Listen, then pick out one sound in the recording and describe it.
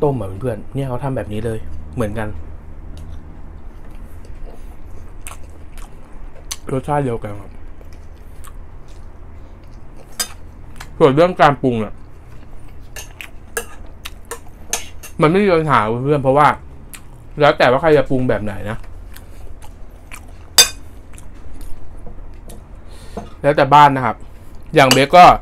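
A young man chews and slurps food loudly.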